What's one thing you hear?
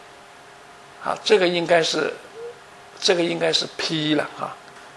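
An elderly man lectures calmly into a microphone.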